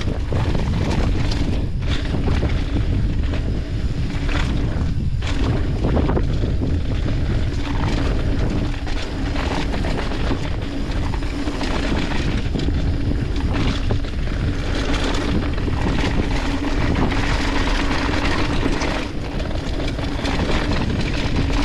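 Wind rushes past a rider's helmet at speed.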